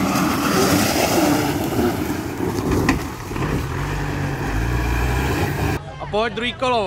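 An off-road vehicle's engine roars and revs.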